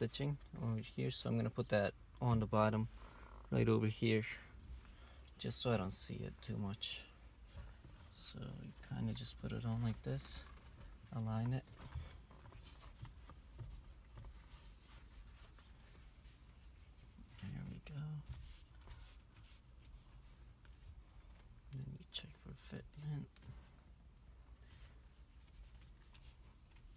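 Hands rub and squeeze a leather steering wheel.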